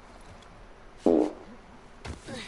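Feet land on the ground with a dull thud.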